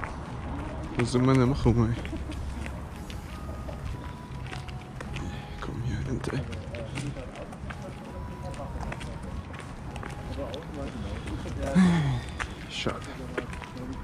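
A young man speaks close by, in short bursts.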